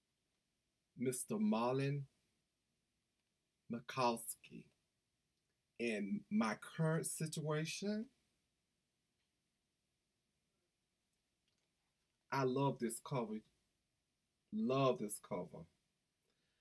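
A middle-aged man speaks calmly and close up, in short bursts with pauses.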